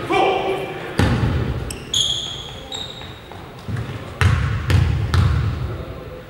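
A basketball bounces with dull thuds on a wooden floor.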